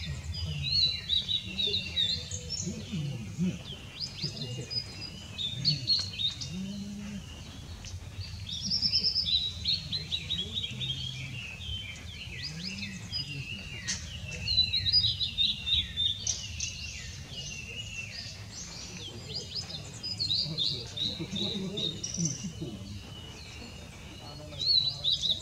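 A blue-and-white flycatcher sings clear warbling phrases.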